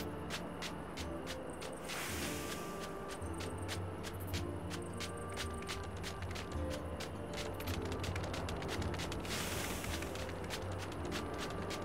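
Bare feet patter quickly on sand.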